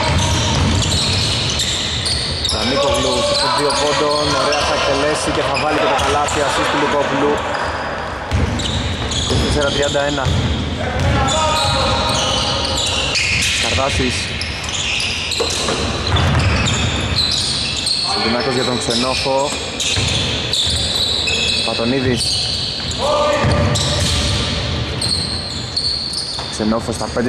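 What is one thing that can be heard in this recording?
Basketball shoes squeak sharply on a hard court in an echoing hall.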